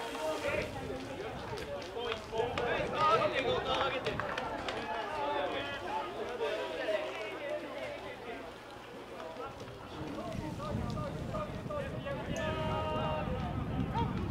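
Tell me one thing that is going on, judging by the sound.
A crowd of young men shouts and cheers outdoors.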